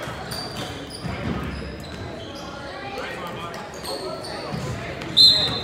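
Voices of young players and adults echo in a large gym hall.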